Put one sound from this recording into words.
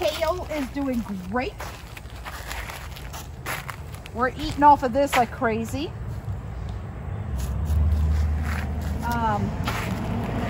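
A woman talks calmly and close by, outdoors.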